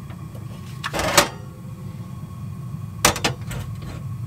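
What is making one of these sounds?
A metal coffee pot clanks down on a stove grate.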